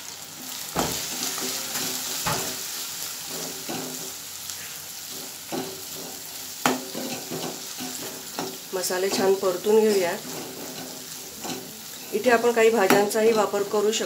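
A metal spoon scrapes and knocks against a metal pan.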